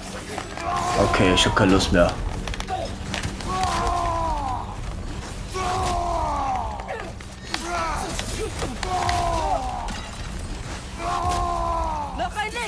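Heavy blows strike with sharp metallic clangs.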